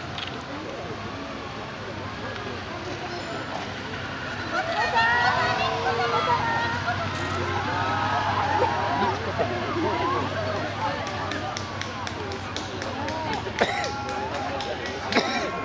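Car engines hum low as cars pass slowly close by.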